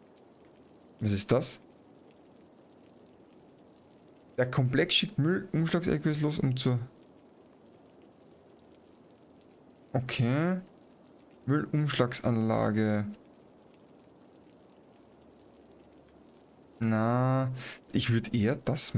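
A man talks with animation in short bursts, close to a microphone.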